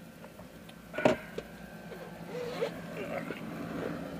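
A car door unlatches and swings open.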